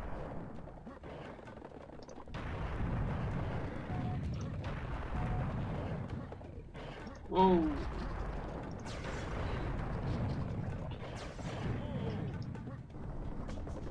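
A cannon fires heavy iron balls with deep booms.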